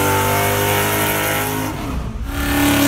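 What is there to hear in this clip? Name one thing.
Tyres screech during a burnout.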